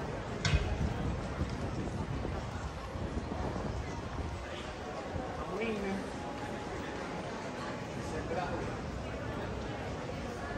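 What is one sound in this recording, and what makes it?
Voices of passers-by murmur in a street.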